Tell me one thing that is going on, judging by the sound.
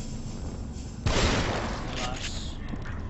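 A gunshot booms loudly and echoes.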